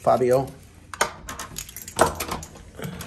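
A door lock clicks as the handle turns.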